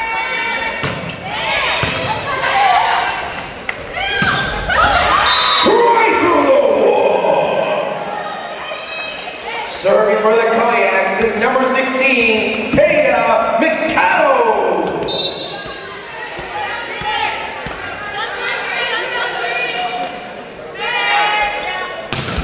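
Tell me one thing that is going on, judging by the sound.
Young women shout and cheer loudly in an echoing gym.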